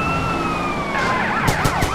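A car crashes into another car with a metal crunch.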